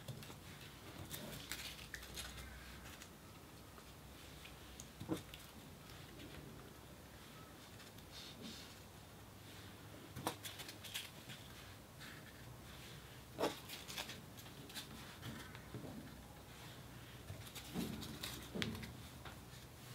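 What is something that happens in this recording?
Paper crinkles and rustles softly under fingertips, close up.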